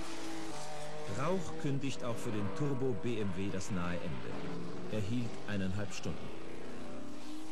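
A racing car engine roars past at high speed.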